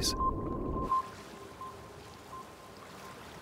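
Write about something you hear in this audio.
Waves wash gently on the open sea.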